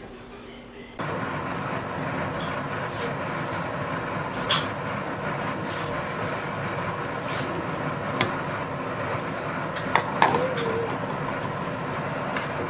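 Meat sizzles steadily in a hot pan.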